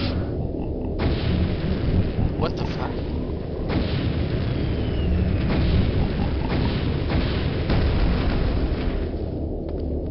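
Laser blasts zap and hiss against metal walls.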